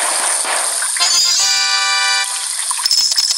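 A bright chiming jingle plays.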